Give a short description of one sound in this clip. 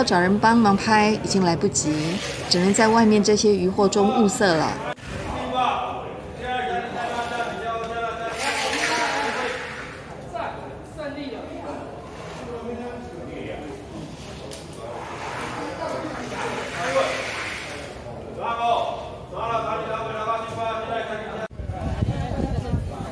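A crowd of men chatters in an echoing hall.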